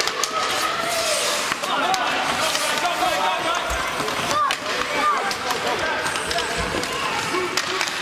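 Hockey sticks strike a puck on ice.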